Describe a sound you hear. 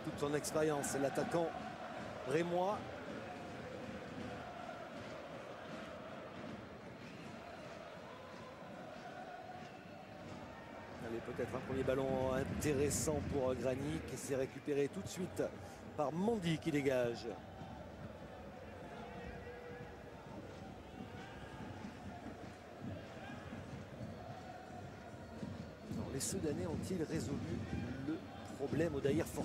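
A large crowd murmurs and chants in a stadium.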